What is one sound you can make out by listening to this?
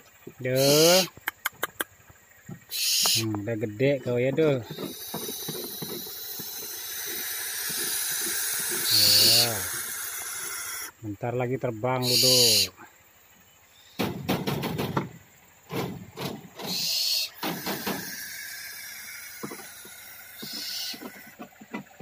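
Young owls hiss loudly in short, harsh bursts, close by.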